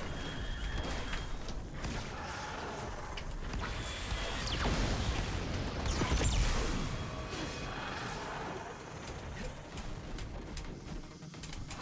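Weapons fire in sharp bursts.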